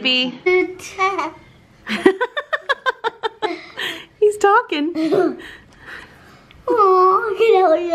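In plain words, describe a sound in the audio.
A young boy talks playfully and closely in a high voice.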